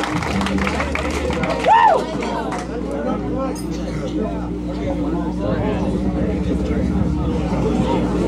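A large crowd of young people chatters loudly indoors.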